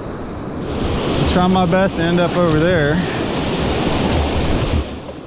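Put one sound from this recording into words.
A fast river rushes and churns close by.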